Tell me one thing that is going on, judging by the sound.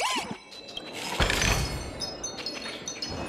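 A bright chime rings as a treasure chest opens.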